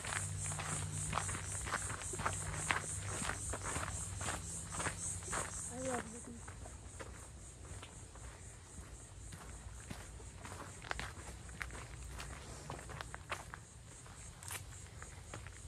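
Footsteps crunch steadily on a sandy dirt path.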